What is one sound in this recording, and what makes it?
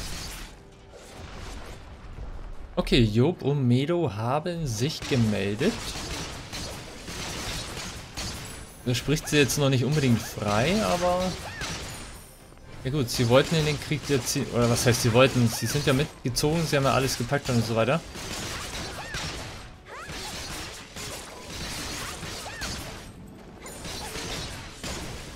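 Sword slashes swish and strike repeatedly with bursts of impact.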